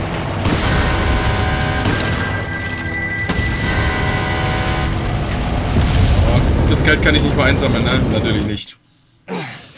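A large explosion roars and rumbles.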